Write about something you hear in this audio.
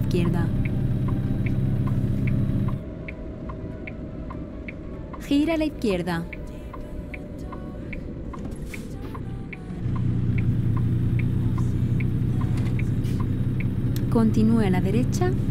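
A truck engine rumbles steadily, easing off for a while and then growing loud again.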